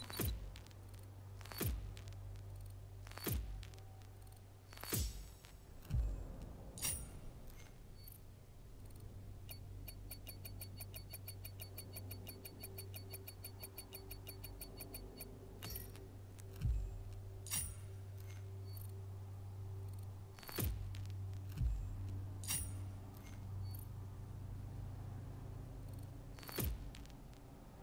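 Short whooshes and chimes sound as awards pop up, one after another.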